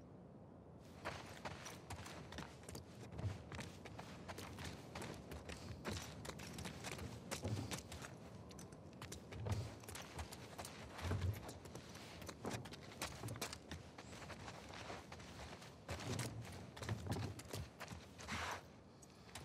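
Footsteps walk across a hard floor indoors.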